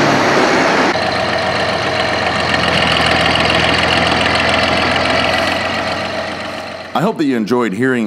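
A diesel farm tractor idles outdoors.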